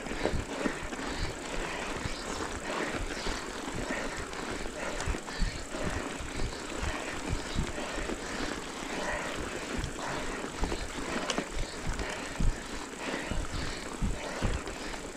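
A bicycle rattles and clunks over bumps.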